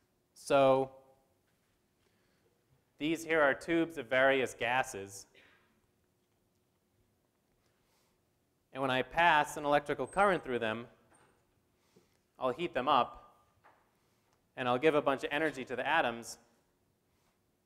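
A man speaks calmly through a microphone in phrases with pauses.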